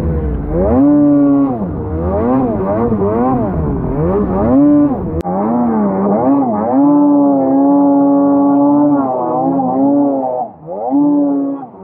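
A snowmobile engine revs up and down loudly, close by.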